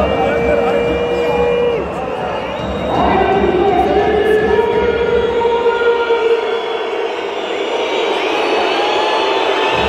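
A large crowd chants and sings loudly in an echoing arena.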